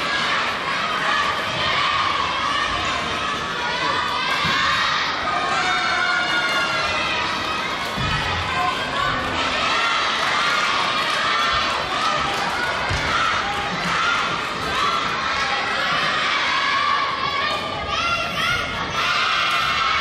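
Many voices chatter and call out in a large echoing hall.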